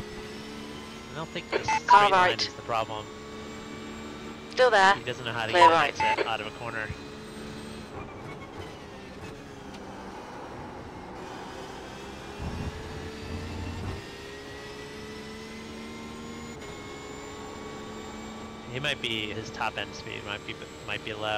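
A racing car engine hums steadily, its pitch shifting up and down with gear changes.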